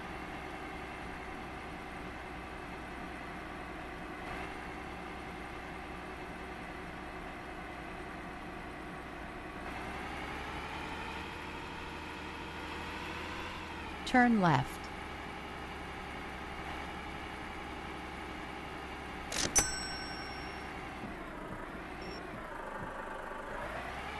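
A truck engine hums steadily and its pitch rises and falls as it speeds up and slows down.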